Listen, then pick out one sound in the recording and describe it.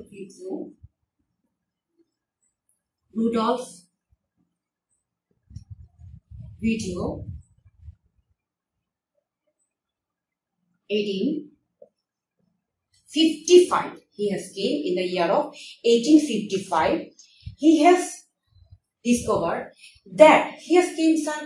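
A young woman speaks calmly into a close microphone, pausing between phrases.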